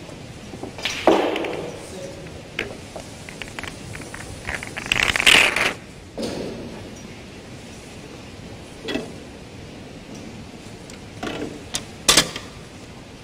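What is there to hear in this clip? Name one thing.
Snooker balls click softly as they are set down on a table.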